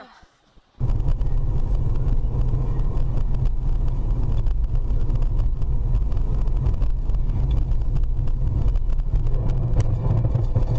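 Tyres hiss and rumble on a road.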